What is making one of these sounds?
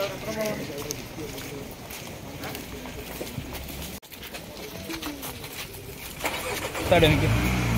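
A crowd of men talks and murmurs nearby outdoors.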